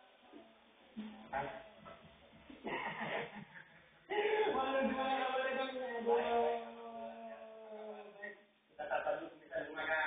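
A man talks with animation through a television speaker.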